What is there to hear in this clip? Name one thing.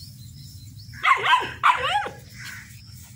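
A puppy yelps and whines.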